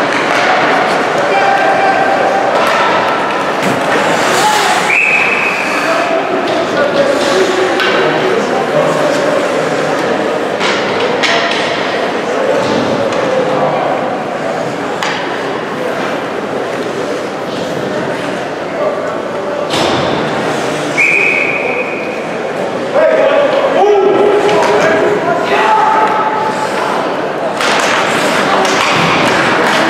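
Skates scrape across the ice.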